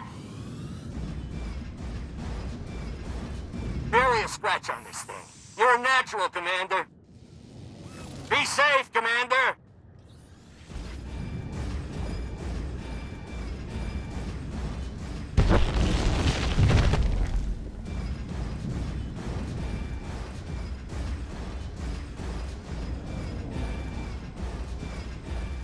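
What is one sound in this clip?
Heavy metal footsteps clank steadily.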